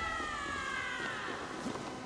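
A blade clashes against a wooden shield.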